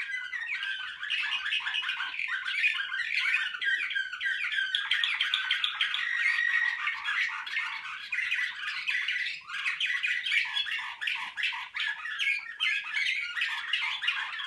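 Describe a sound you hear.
Small songbirds sing with rapid, continuous trilling and chirping close by.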